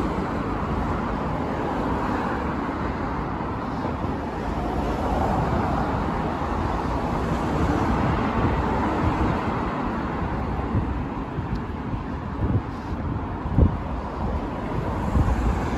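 City traffic hums steadily nearby.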